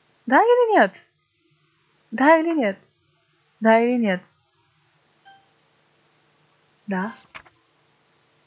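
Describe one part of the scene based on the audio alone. A young woman speaks animatedly into a close microphone in short bursts.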